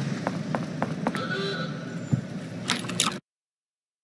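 A heavy metal door unlocks with a click.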